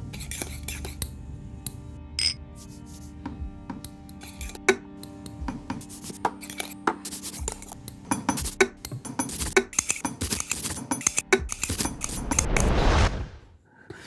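Glasses clink as they are set down on a table.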